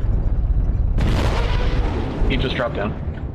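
Heavy guns fire in a loud rapid burst.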